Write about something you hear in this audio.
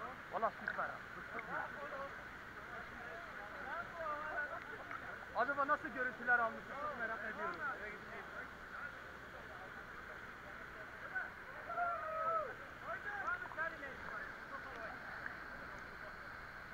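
A waterfall roars steadily, pouring into a pool.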